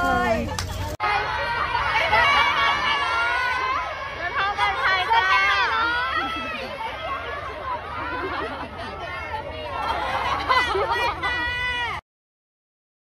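A crowd of young women cheers and screams.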